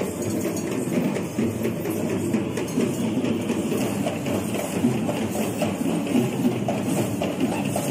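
Drums beat a fast rhythm in an outdoor street procession.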